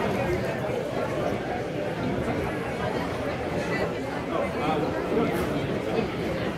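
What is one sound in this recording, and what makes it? A crowd of people chatters and murmurs all around outdoors.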